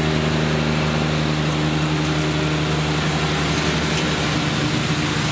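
A tractor engine hums steadily close by.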